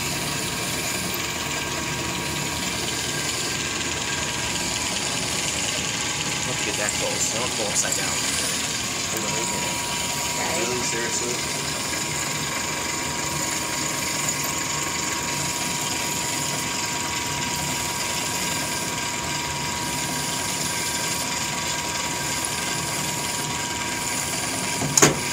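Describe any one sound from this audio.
A metal lathe runs with a steady hum.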